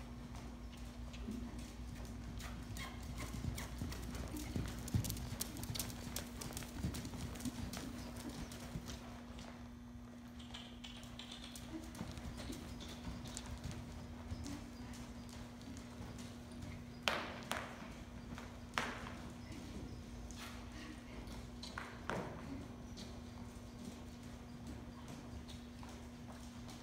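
A horse's hooves thud softly on sand.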